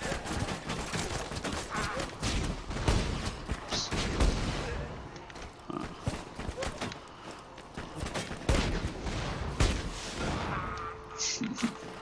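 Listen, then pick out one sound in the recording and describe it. A heavy gun fires in rapid bursts.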